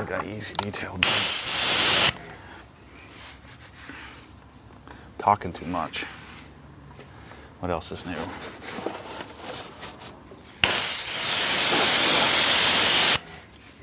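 Water sprays hard from a hose.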